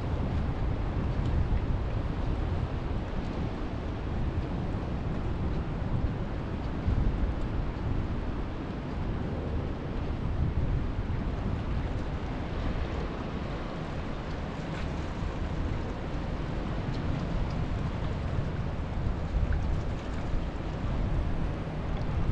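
Small waves lap gently against rocks nearby.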